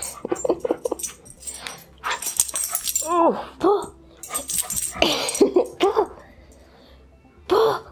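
A dog shakes and chews a rope toy.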